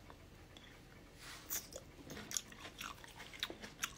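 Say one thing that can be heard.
A young woman bites and chews something crunchy close to the microphone.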